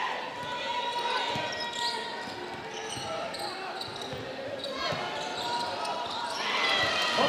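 A large crowd murmurs and cheers in an echoing hall.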